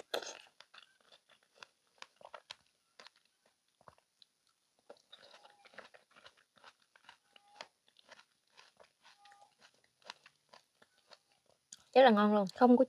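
A woman chews fruit wetly and quietly, close to a microphone.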